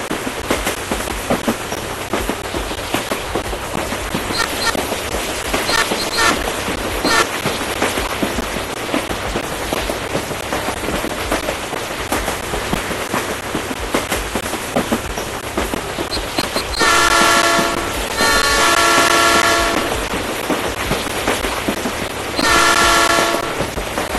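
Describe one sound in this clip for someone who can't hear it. A train engine rumbles and clatters steadily along the tracks.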